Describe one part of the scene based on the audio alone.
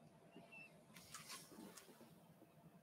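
A sheet of paper rustles briefly as it is shifted on a table.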